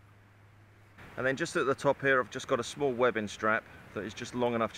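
A middle-aged man speaks calmly and close to a microphone.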